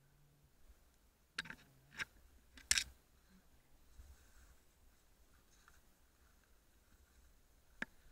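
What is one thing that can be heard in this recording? Skis brush and crunch through snow.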